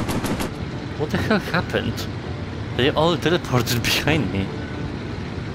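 A man speaks with animation close by.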